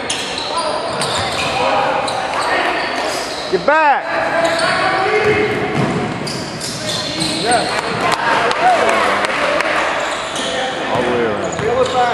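Sneakers squeak sharply on a hard floor in a large echoing hall.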